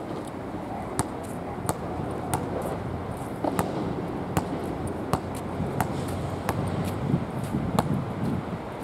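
A basketball bounces on hard court again and again.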